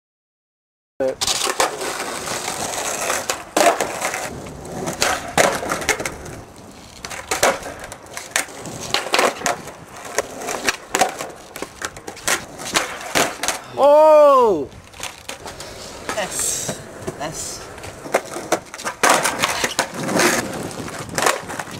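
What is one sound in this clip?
A skateboard tail snaps and clatters on landing.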